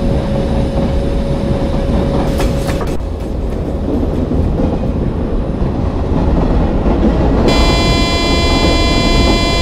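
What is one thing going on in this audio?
An electric passenger train rumbles along the rails, picking up speed.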